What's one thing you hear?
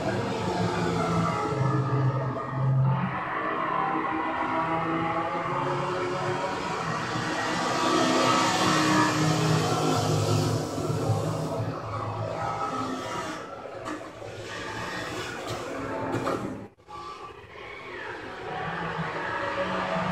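Racing car engines roar and whine as they speed past.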